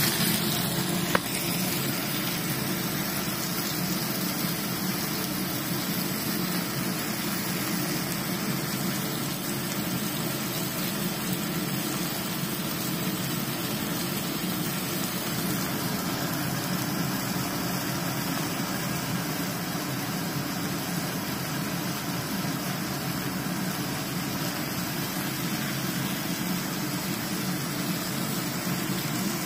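A cooktop vent fan hums steadily.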